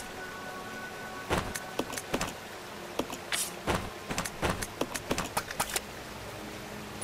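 Short electronic clicks and beeps sound in quick succession.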